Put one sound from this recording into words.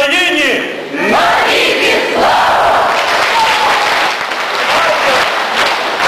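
Singers clap their hands loudly.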